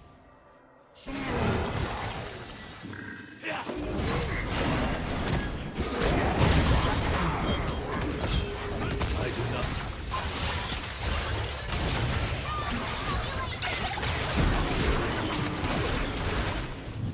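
Fantasy battle sound effects of magic blasts and hits burst rapidly.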